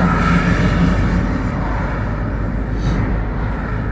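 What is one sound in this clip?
A van passes by in the other direction.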